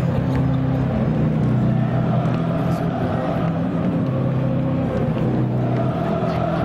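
A large crowd cheers and shouts loudly in a big echoing hall.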